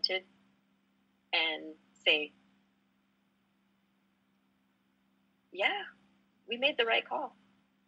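A woman speaks calmly into a microphone in short phrases.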